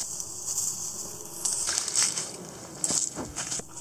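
Dry leaves rustle and crackle under a hand.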